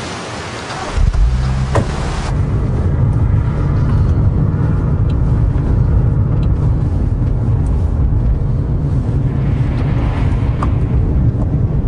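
A car engine rumbles steadily from inside a moving car.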